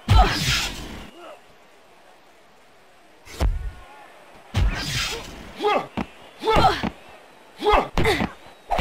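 Heavy thuds land on a mat again and again.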